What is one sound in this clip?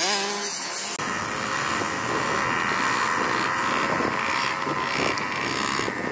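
A small dirt bike engine idles close by with a low rumble.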